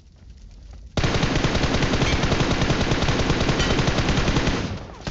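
Gunshots fire in a rapid, steady burst.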